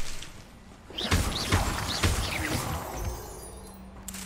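A magic spell bursts with a crackling whoosh.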